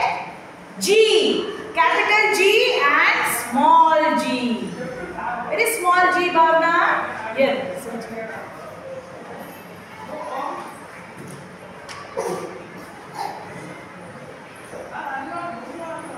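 A young girl speaks loudly and clearly close by, pausing between words.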